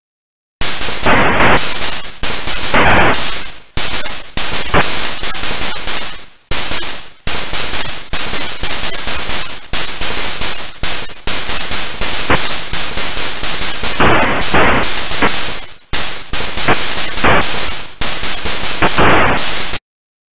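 Noisy electronic explosions from a retro video game burst and hiss.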